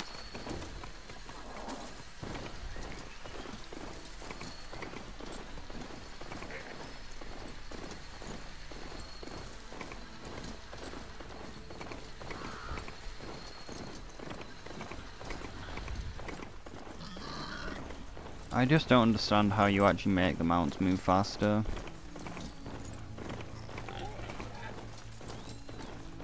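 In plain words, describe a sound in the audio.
Heavy metallic hooves thud rapidly on rough ground.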